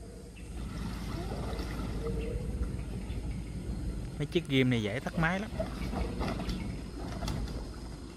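Water sloshes around a motorbike's wheels.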